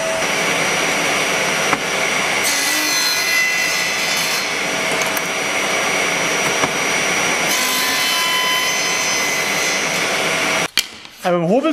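A table saw runs with a loud, steady whine.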